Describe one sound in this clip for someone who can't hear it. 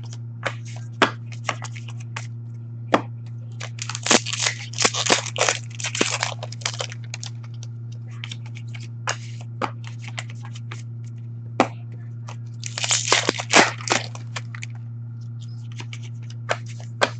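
Cards tap and click against a glass counter.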